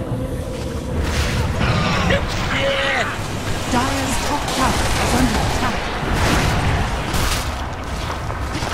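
Magic spells burst and weapons clash in a hectic fantasy battle.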